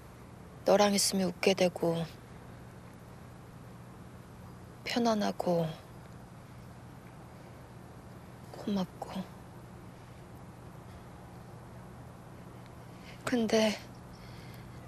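A young woman speaks softly and sadly in short bursts, close by.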